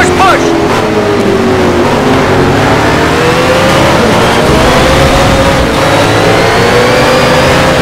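A racing car engine roars loudly, rising and falling in pitch as it shifts gears.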